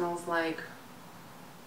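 A woman speaks briefly and close by.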